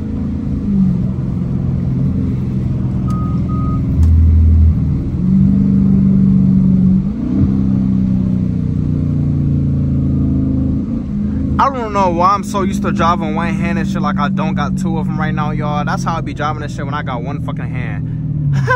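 A V8 muscle car accelerates hard through the gears, heard from inside the cabin.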